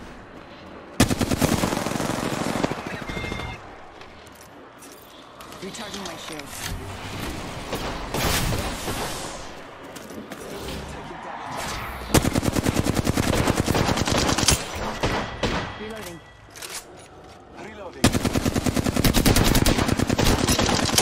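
Rapid automatic gunfire rattles in sharp bursts.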